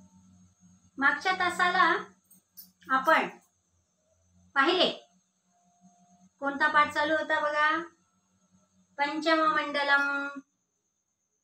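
A middle-aged woman speaks calmly and clearly, close to the microphone, with pauses.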